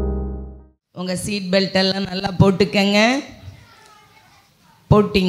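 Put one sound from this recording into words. A woman speaks calmly into a microphone over a loudspeaker, with a slight echo.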